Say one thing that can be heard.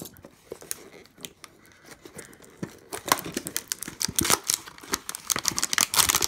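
Hands tear and crinkle a cardboard and plastic pack open.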